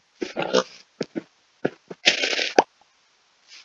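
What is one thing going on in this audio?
Blocks of earth break with quick crunching thuds.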